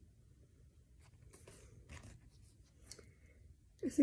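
A plastic case rustles and clicks as it is handled.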